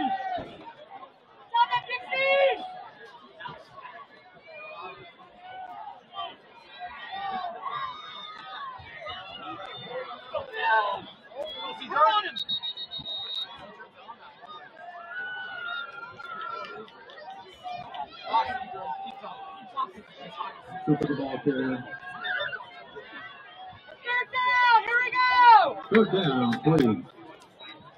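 A crowd of players and spectators cheers and shouts outdoors.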